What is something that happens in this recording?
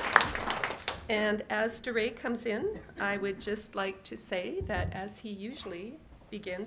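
A middle-aged woman speaks warmly through a microphone in a large hall.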